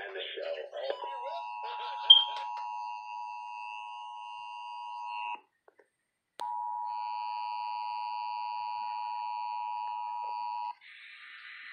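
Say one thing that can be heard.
A radio sounds a steady two-tone alert signal.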